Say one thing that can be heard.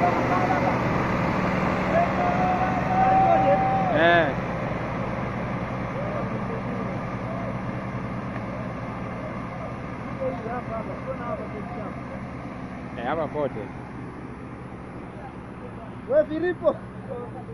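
Tractor engines rumble steadily outdoors, slowly fading.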